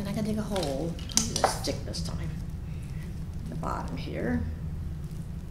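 An elderly woman speaks calmly close to a microphone.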